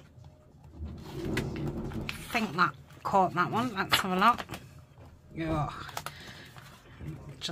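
Book pages rustle and turn.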